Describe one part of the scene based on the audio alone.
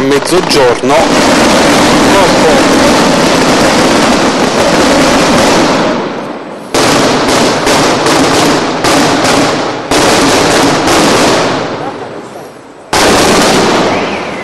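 A large crowd claps.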